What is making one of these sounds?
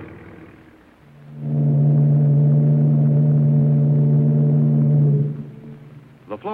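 A ship's horn blasts long and deep.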